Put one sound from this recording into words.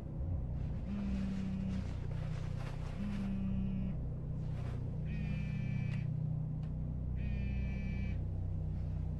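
A mobile phone buzzes in short, repeated bursts.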